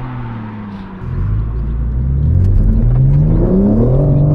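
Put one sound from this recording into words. A car engine roars and climbs in pitch, heard from inside the car.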